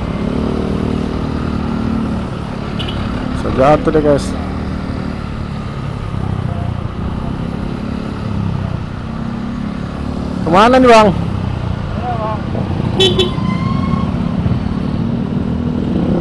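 Heavy trucks rumble past in traffic.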